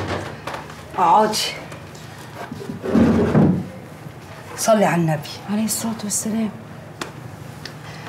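A young woman answers in a worried voice.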